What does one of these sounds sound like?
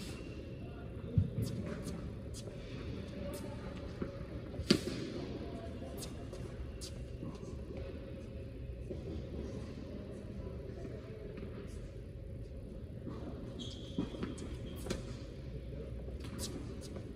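Tennis balls bounce on a hard court.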